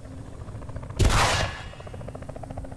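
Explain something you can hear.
A rocket launcher fires with a loud whoosh.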